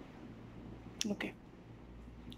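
A young boy claps his hands.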